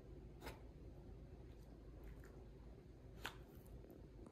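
A small dog gnaws at a hard chew.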